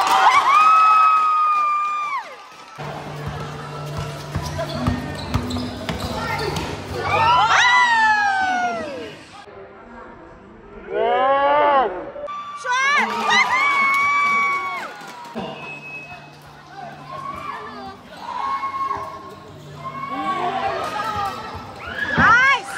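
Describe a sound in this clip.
A crowd cheers and shrieks loudly around an echoing court.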